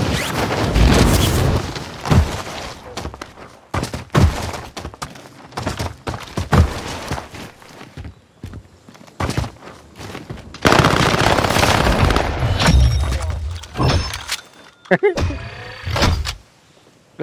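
A rifle fires in short bursts of sharp shots.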